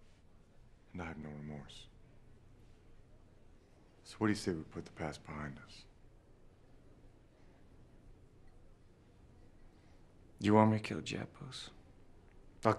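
A second man answers in a low, measured voice.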